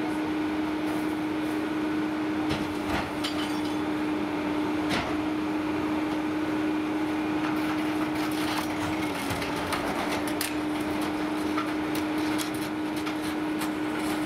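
Bins and trash clatter and bang as they are tipped into a garbage truck.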